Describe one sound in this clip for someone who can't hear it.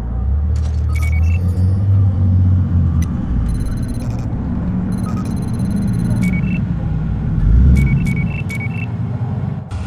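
A handheld electronic scanner beeps as it locks on.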